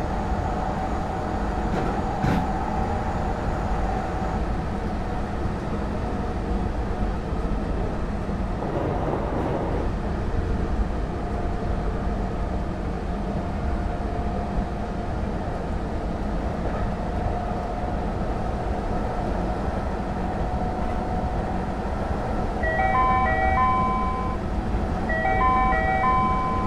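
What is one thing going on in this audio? A train's electric motor hums and whines as it runs.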